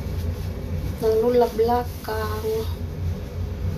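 A woman sings a few short notes close by.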